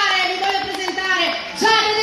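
An audience claps along.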